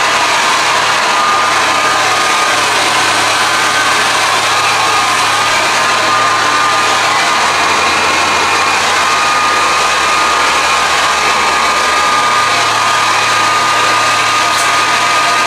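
A hair dryer blows with a loud, steady whoosh close by.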